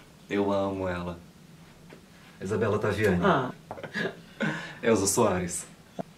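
A woman laughs softly.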